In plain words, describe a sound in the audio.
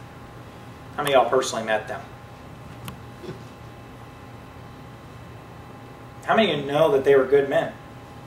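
A man speaks to an audience through a microphone, pausing between phrases.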